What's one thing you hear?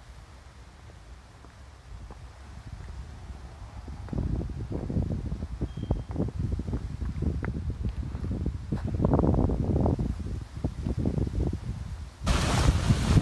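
Footsteps climb concrete steps outdoors.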